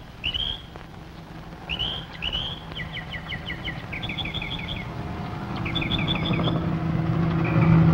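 A helicopter drones overhead and grows louder.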